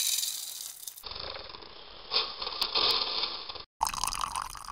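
Coffee drips and trickles into a glass pot.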